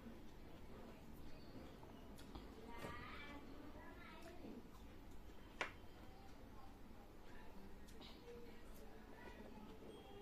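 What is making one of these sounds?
A young woman chews food with soft wet mouth sounds close to the microphone.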